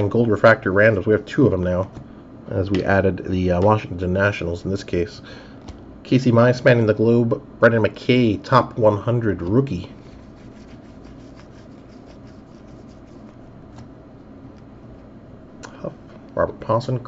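Trading cards rustle softly as they are flipped through by hand.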